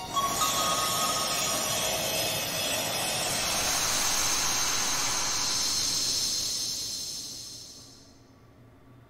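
A bright magical chime swells and shimmers, then fades away.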